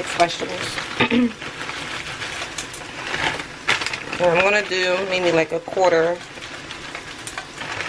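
Frozen vegetables rattle as they are poured into a pan.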